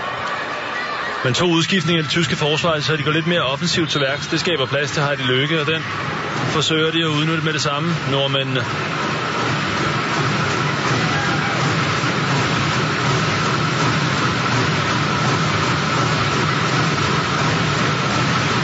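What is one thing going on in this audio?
A large crowd murmurs and cheers in an echoing indoor arena.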